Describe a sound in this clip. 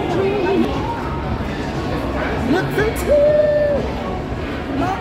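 A young woman talks and shouts close by.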